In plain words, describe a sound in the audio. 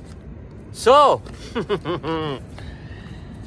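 A young man speaks with animation close to the microphone.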